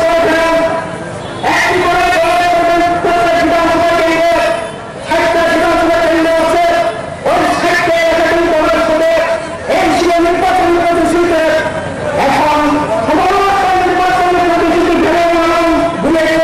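A man speaks forcefully into a microphone, heard through a loudspeaker outdoors.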